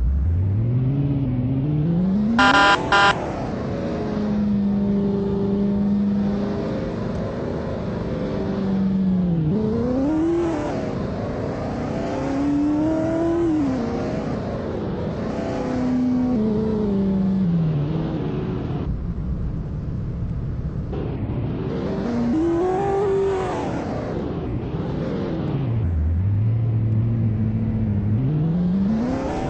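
A car engine revs up and down as it drives.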